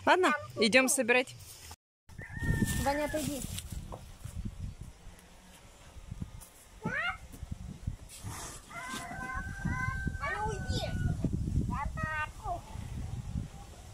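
A young child talks and squeals nearby.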